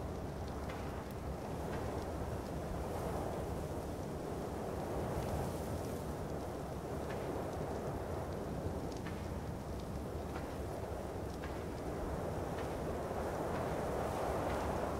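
Footsteps crunch steadily over stony ground.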